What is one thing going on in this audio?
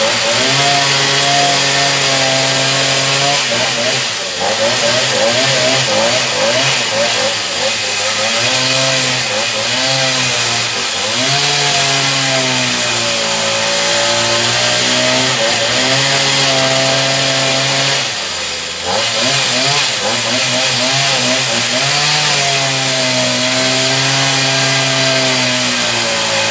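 A chainsaw roars loudly, its engine revving up and down as it cuts through wood.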